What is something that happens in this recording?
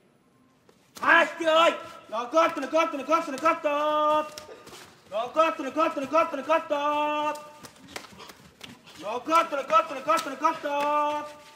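A man's voice calls out loudly and rhythmically.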